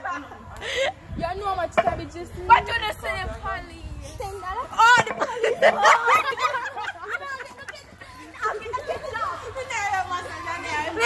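Young girls talk and laugh excitedly close by, outdoors.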